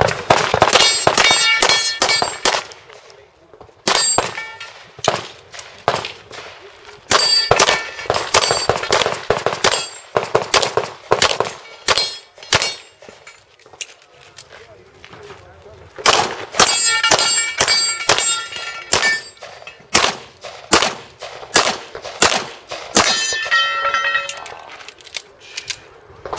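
A handgun fires rapid shots outdoors.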